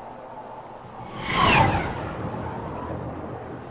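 A spacecraft roars past overhead.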